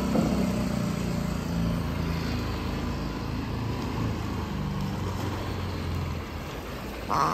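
A boat's outboard motor hums steadily nearby.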